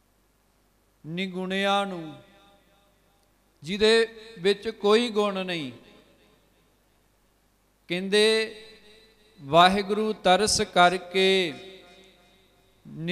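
A man speaks with feeling into a microphone, heard through loudspeakers in a reverberant space.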